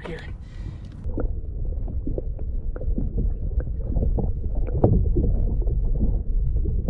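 Water burbles and rushes, heard underwater.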